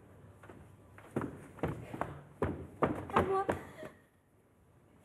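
Footsteps thud quickly across a wooden stage.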